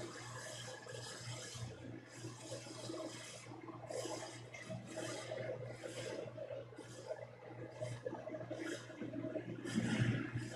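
Footsteps shuffle softly across the floor.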